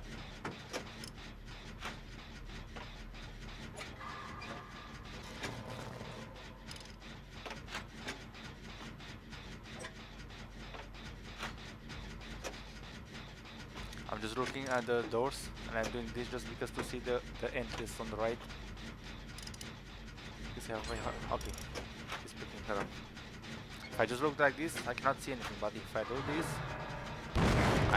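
Metal parts rattle and click as an engine is worked on.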